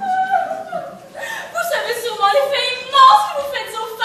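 A woman speaks loudly from a stage.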